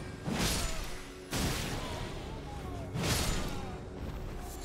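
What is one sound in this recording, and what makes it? A blade swings through the air with loud whooshes.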